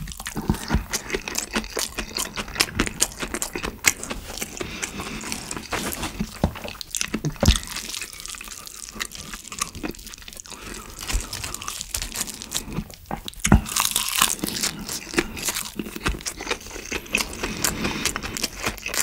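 A young man chews food loudly and wetly, close up.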